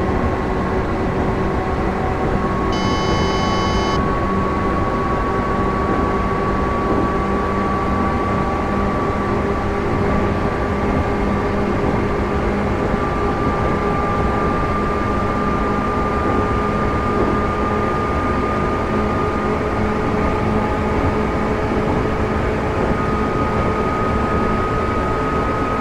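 A train's electric motor whines, its pitch rising slowly as it speeds up.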